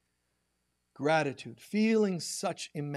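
A man speaks slowly into a microphone.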